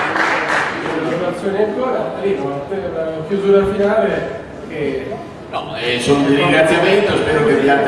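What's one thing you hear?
A man speaks calmly into a microphone over a loudspeaker.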